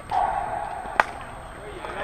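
A bat cracks sharply against a softball.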